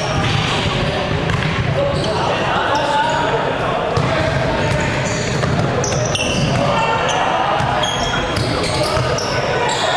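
Young men call out to each other in a large echoing hall.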